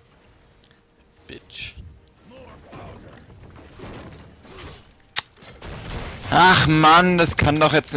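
Fantasy game spells whoosh and hit in a fight.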